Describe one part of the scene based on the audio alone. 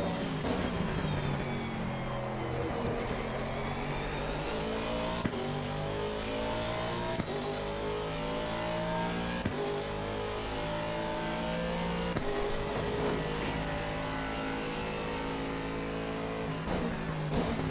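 A racing car engine roars and revs up through the gears.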